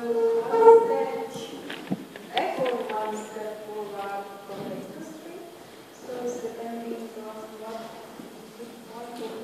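A woman speaks calmly into a microphone, heard through loudspeakers in a large room.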